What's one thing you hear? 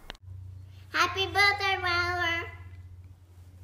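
A young girl speaks brightly, close by.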